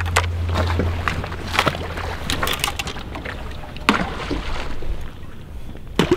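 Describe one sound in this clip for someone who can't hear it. Water splashes as decoys are tossed onto it.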